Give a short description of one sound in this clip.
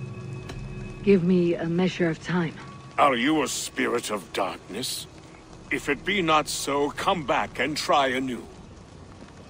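A man speaks slowly in a deep, low voice.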